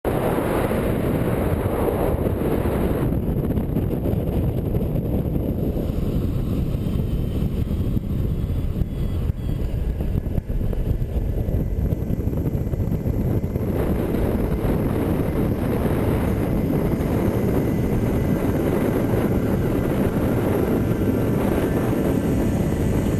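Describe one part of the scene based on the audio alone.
Wind rushes and buffets loudly past the microphone.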